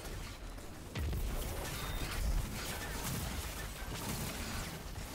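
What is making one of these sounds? Electric crackling and zapping bursts out.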